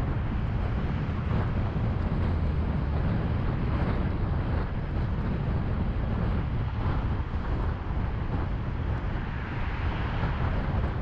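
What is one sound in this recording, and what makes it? Traffic roars steadily past on a busy highway.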